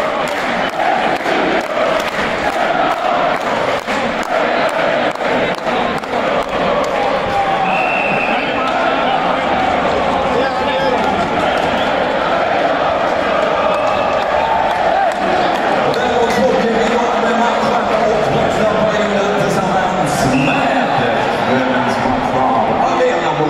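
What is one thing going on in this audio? A large crowd sings and chants loudly in an echoing arena.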